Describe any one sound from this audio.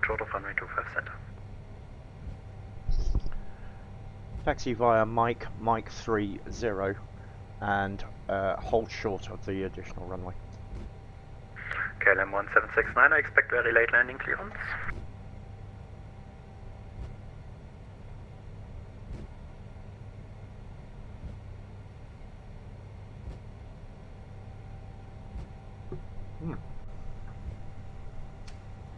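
A jet engine hums low and steadily while taxiing.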